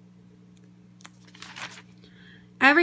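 A hand flips a page of a ring binder.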